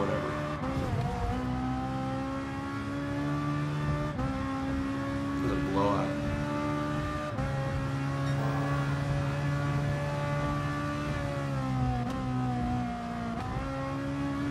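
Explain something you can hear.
A racing car engine roars at high revs, shifting gears up and down.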